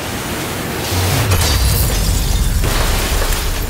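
Glass shatters with a bright crash.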